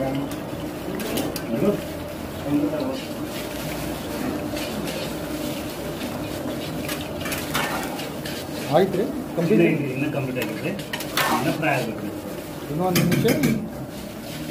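A metal skimmer scrapes against a metal pan.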